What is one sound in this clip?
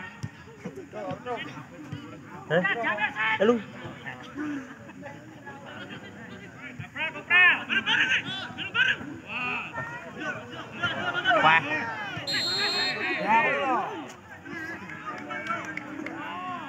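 Men on a playing field shout and call out to each other.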